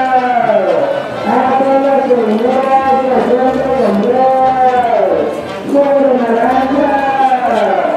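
A group of women sings together in a slow, steady melody.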